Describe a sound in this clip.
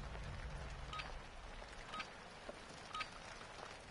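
A timer beeps in short, high blips as a countdown ends.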